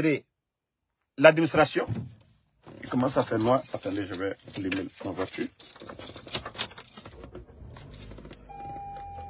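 A young man talks with animation, close to the microphone.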